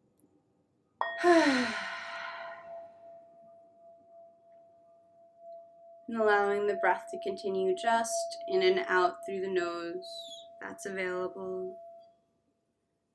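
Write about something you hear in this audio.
A singing bowl hums with a steady ringing tone as its rim is rubbed.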